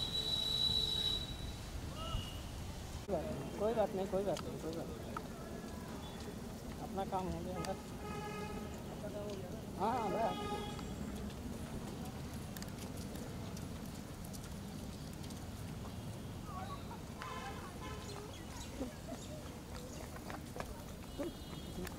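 A bicycle rolls over a wet road.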